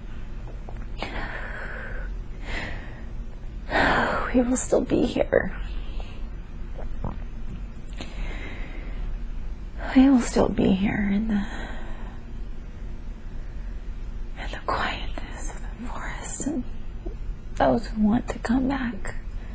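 A woman moans and sighs close by, in bursts.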